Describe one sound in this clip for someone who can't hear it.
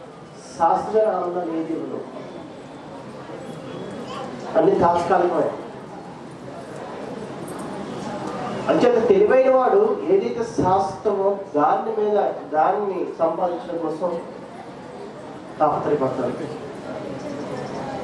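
A man speaks calmly into a microphone, heard through a loudspeaker.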